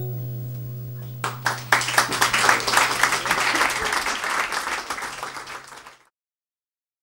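An electric guitar rings with a steady, low buzzing drone.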